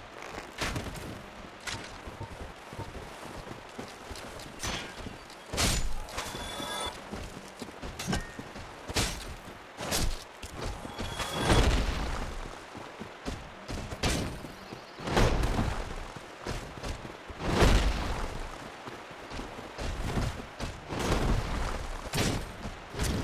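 Weapons clash and strike with sharp metallic hits.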